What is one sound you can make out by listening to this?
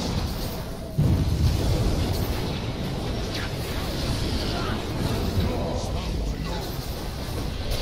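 Heavy booming impacts rumble from a video game fight.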